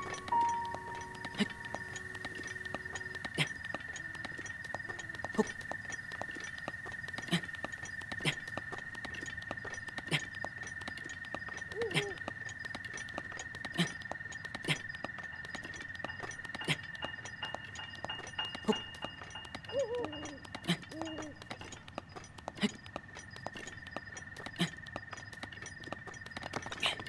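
Hands and feet scrape and thud on rock at a slow, uneven pace.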